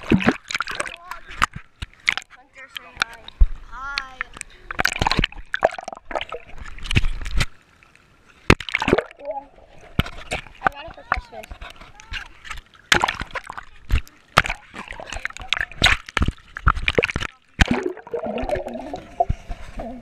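Pool water splashes and sloshes as the microphone dips in and out of the water.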